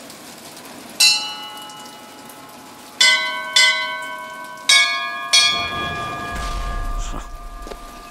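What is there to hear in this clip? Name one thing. Bells ring one after another, each strike leaving a fading tone.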